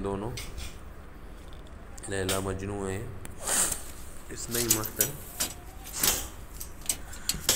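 A wire cage rattles and clinks under a hand.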